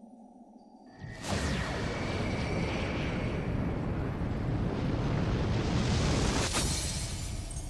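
A magical burst swells into a loud rushing roar.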